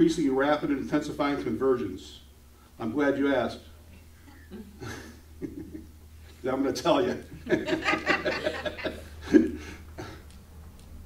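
A middle-aged man speaks calmly into a microphone in a room with some echo, pausing between phrases.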